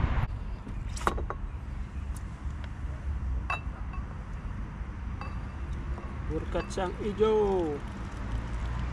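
A metal pot clinks against a wooden bench.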